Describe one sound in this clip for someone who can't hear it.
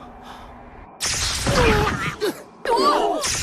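A man cries out in pain, close by.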